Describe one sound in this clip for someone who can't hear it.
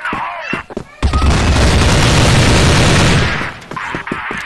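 Gunfire rattles in a rapid, sustained burst.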